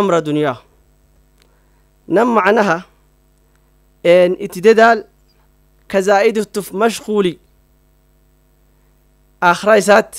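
A man speaks calmly into a microphone in short phrases with pauses between them.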